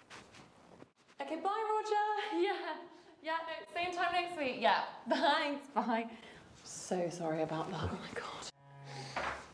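A young woman sings loudly nearby.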